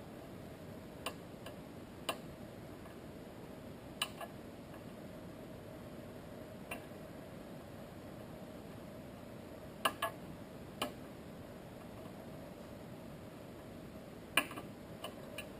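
Small tools click and tap against a phone.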